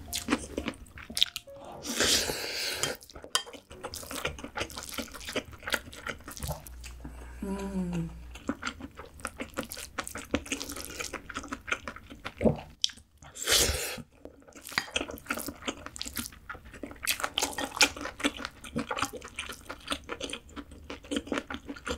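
Chopsticks clink and scrape against a glass bowl.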